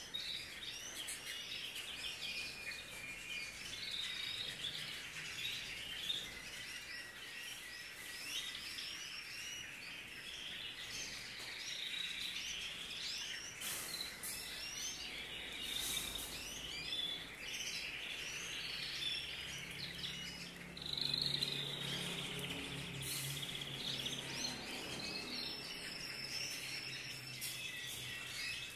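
Many small birds chirp and twitter steadily close by.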